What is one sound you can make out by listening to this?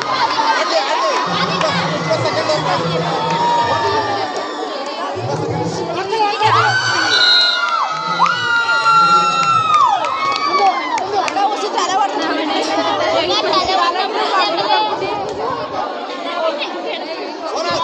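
A large crowd of young women cheers and shouts outdoors.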